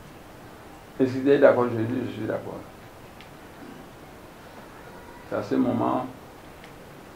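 An elderly man speaks loudly in short bursts, close by.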